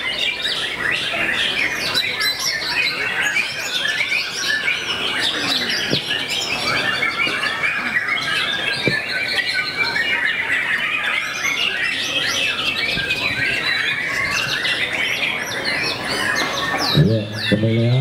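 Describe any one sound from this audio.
Many birds chirp and twitter busily all around.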